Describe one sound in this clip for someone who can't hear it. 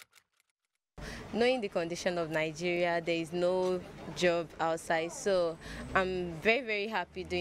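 A young woman speaks calmly and cheerfully into a microphone.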